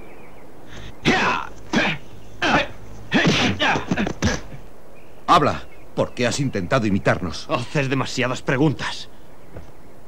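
A young man speaks sharply and forcefully, close by.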